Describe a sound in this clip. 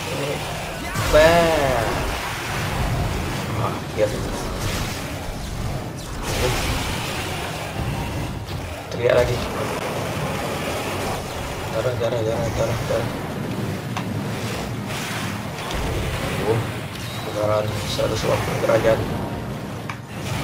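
A large monster roars and growls.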